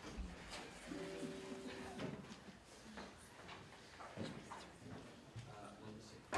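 A small audience murmurs quietly in an echoing hall.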